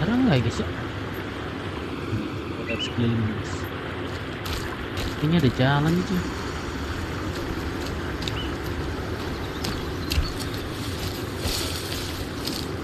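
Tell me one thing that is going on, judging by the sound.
Footsteps crunch on leaves and forest ground.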